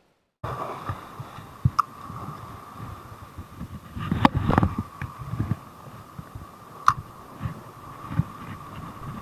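Wind buffets the microphone.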